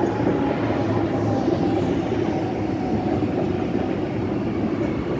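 An electric train rolls past with a steady rumble and clatter of wheels on rails.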